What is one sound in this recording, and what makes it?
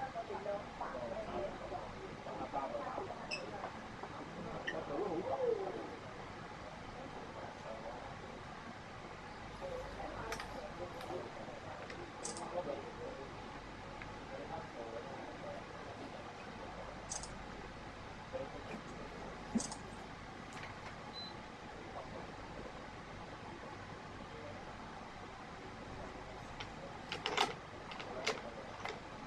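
Strings rustle and swish as hands thread them through a racket.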